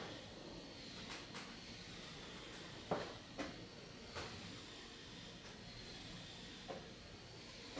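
A wooden chess piece knocks down on a board.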